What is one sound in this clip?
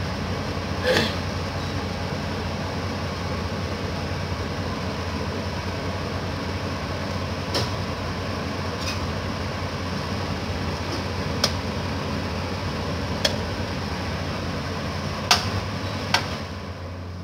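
Thick sauce bubbles and pops gently in a pot.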